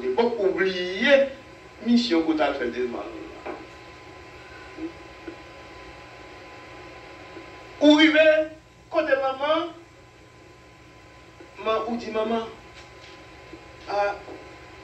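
An elderly man preaches with emphasis into a microphone, in bursts with pauses.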